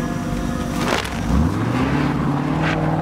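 A car engine starts and revs up.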